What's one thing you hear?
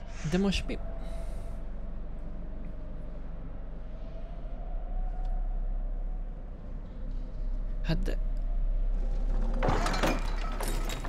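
A young man talks briefly into a close microphone.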